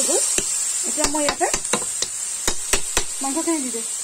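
A metal spatula scrapes and knocks against a pan.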